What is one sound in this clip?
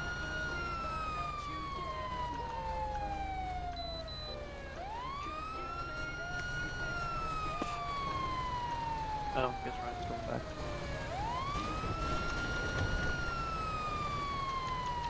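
A police siren wails, rising and falling slowly.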